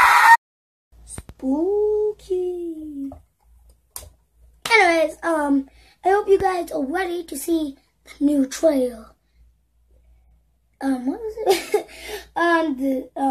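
A boy talks with animation close to a microphone.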